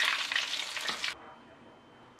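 Hot oil sizzles and bubbles.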